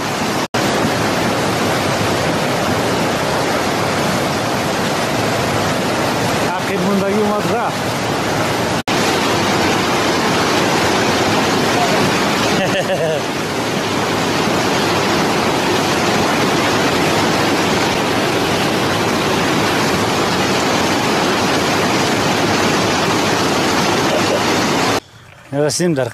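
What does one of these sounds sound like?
A fast river rushes and roars over rocks.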